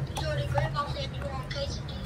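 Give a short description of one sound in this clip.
A spoon scrapes in a plastic cup.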